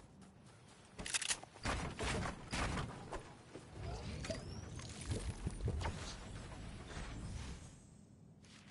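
Wooden planks clatter and knock as they are put up.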